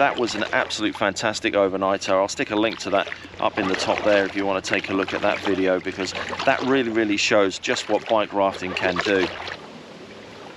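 A middle-aged man talks calmly, close up.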